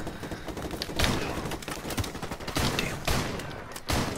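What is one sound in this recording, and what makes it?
A rifle fires rapid bursts of loud gunshots.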